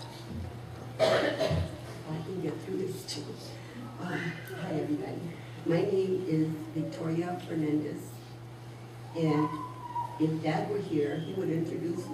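An older woman speaks calmly into a microphone over loudspeakers.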